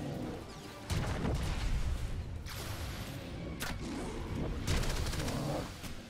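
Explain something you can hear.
Blaster shots zap and fizz in quick bursts.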